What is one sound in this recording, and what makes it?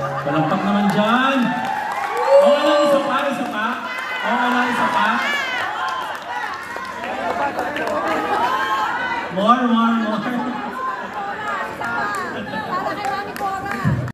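A man sings through loudspeakers in a large echoing hall.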